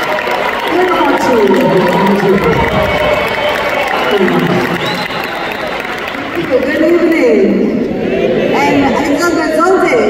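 A woman talks through a microphone over loudspeakers in a large hall.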